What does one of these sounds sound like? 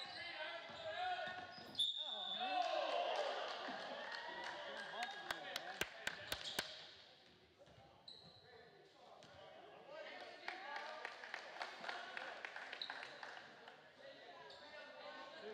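Spectators talk and shout in an echoing hall.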